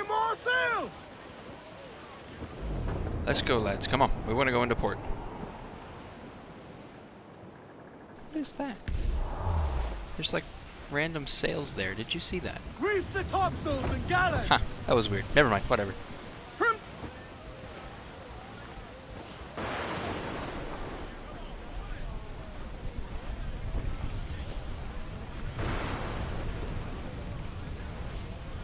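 Stormy wind and waves roar around a sailing ship.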